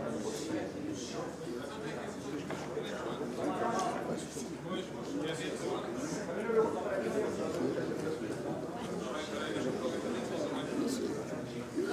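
A middle-aged man speaks into a microphone with animation.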